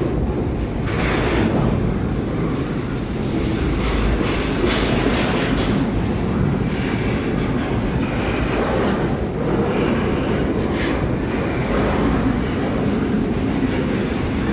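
Wheels clatter and squeal on the rails.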